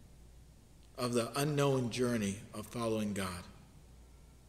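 A man speaks calmly and clearly, close to the microphone.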